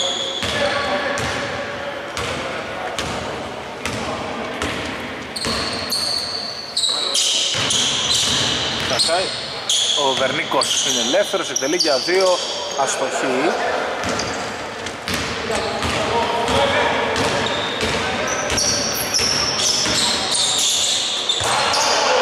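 Sneakers squeak sharply on a polished floor.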